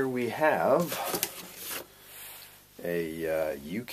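A power cable rustles and clicks as it is lifted out.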